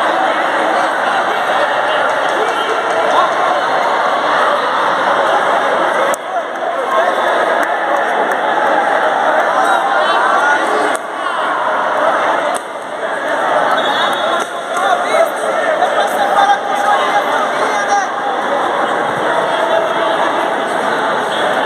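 A crowd chatters and cheers throughout a large echoing hall.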